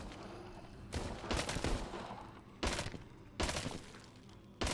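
A pistol fires several shots indoors.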